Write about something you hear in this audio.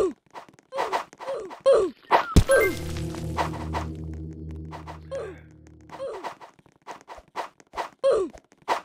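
Short swooping cartoon sound effects repeat in quick bursts.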